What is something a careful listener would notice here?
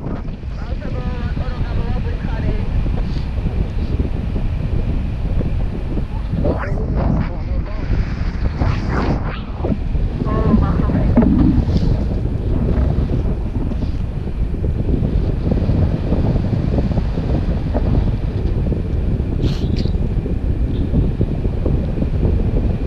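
Strong wind rushes and buffets loudly against the microphone.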